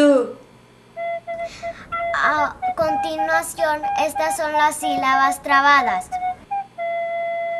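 A young girl talks with animation, close to the microphone.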